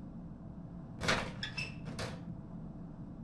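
A metal locker door rattles open.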